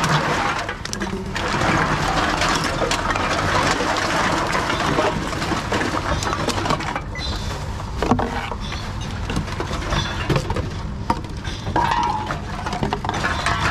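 Empty cans and plastic bottles clatter together.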